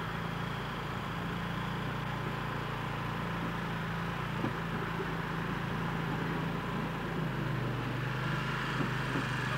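A small boat engine hums steadily nearby.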